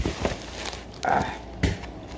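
Something bumps against the microphone with loud thuds.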